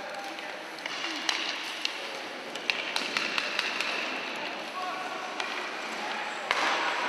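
Hockey sticks clack and tap against a puck on ice.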